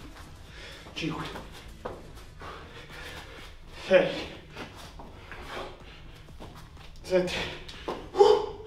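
Bare feet thud and land on a hard floor.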